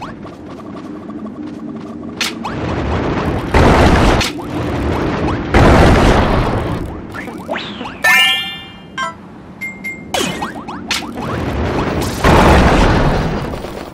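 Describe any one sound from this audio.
Bright electronic game music plays throughout.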